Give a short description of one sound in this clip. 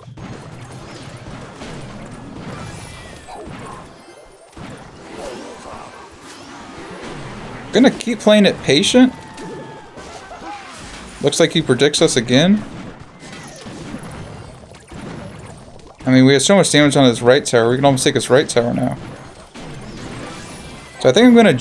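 Video game battle effects clash and chime.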